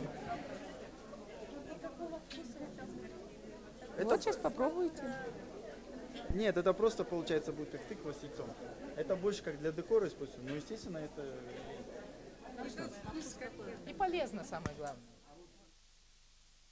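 A crowd of men and women chatter nearby in a busy room.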